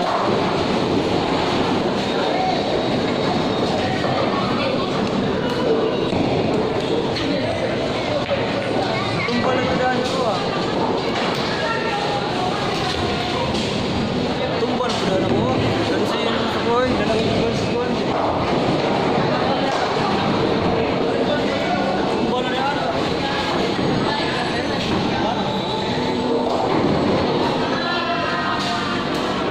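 Bowling balls roll and rumble along wooden lanes in a large echoing hall.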